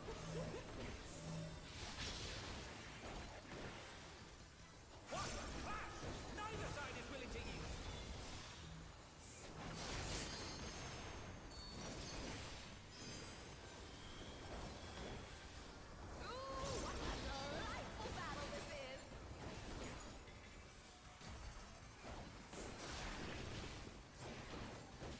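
Magic spell effects whoosh and crackle in bursts.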